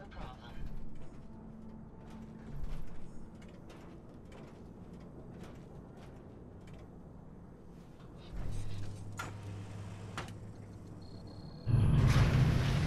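Heavy metal footsteps clank on a hard floor.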